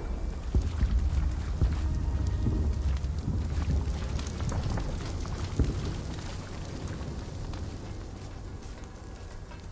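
Footsteps run over stone paving.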